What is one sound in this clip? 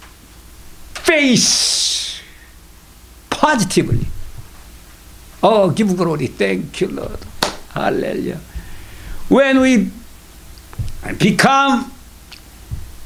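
An older man speaks dramatically into a microphone in bursts, with long pauses.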